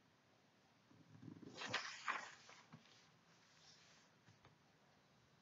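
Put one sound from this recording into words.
Paper rustles and slides as a hand moves it.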